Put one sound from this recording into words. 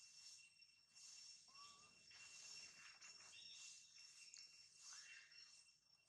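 A baby monkey squeaks softly.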